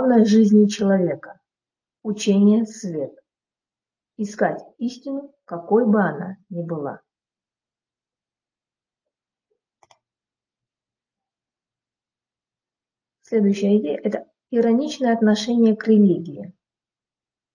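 A woman lectures calmly through a microphone, with long pauses.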